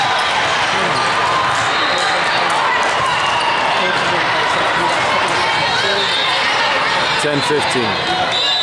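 Many voices of young women and spectators chatter and call out in a large echoing hall.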